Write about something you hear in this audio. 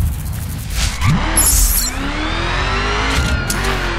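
A car engine revs up and roars.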